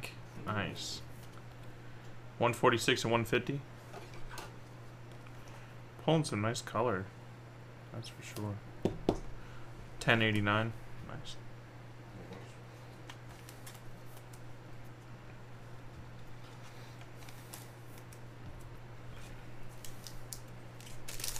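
Trading cards rustle as they are shuffled by hand.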